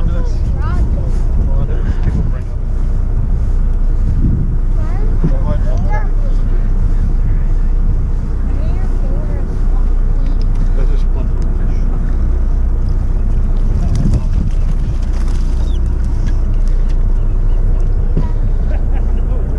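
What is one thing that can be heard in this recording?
Waves slap and splash against a boat.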